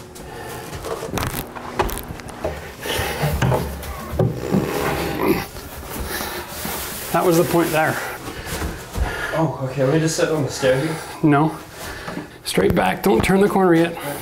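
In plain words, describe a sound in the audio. Wooden furniture bumps and knocks against a staircase.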